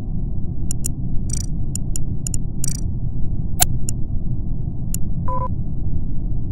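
A game menu clicks.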